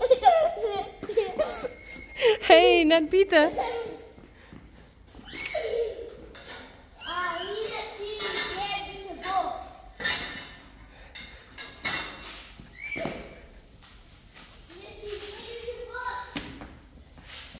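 A young boy talks and squeals excitedly close by.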